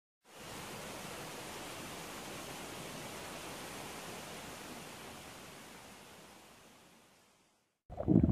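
Water rushes steadily down a small waterfall.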